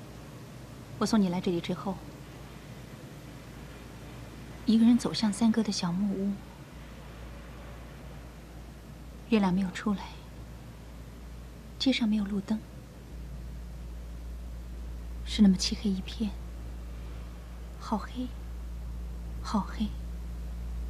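A young woman speaks softly and slowly, close by, with long pauses.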